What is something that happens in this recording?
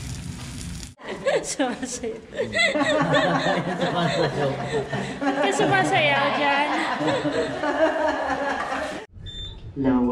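Several adults talk and laugh with animation close by.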